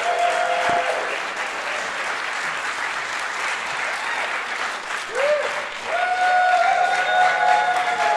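A large choir sings in an echoing hall.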